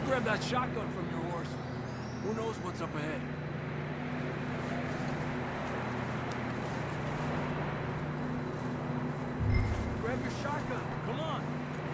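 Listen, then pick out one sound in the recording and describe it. Footsteps trudge through deep snow.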